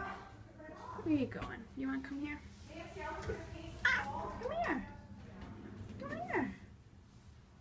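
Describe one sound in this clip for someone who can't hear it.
A cat meows repeatedly nearby.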